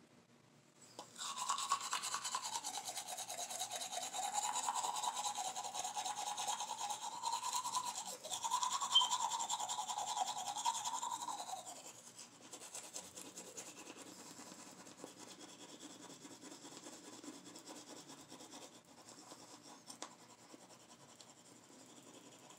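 A toothbrush scrubs briskly against teeth close by.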